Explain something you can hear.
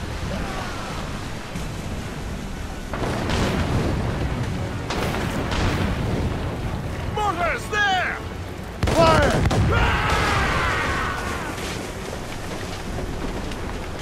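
Wind and waves rush steadily.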